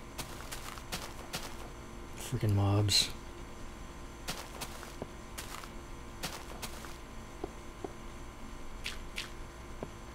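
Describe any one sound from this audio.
Soft footsteps thud on grass and stone at an uneven pace.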